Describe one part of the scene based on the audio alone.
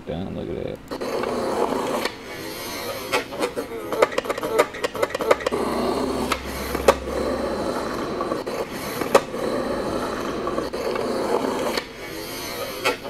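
Skateboard wheels roll and rumble on concrete.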